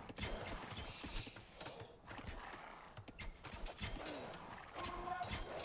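Swords clang and clash in a busy battle.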